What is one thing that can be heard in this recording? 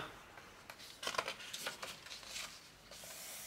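A page of a book turns with a papery rustle.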